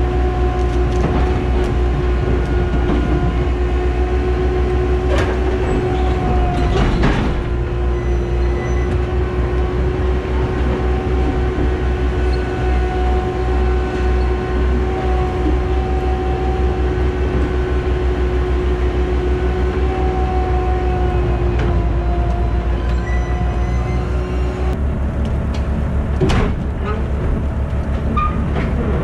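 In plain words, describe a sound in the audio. A tracked loader's diesel engine rumbles steadily close by.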